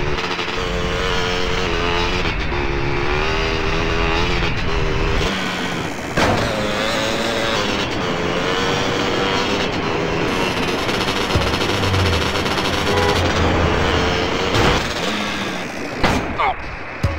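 A motorbike engine revs and drones loudly.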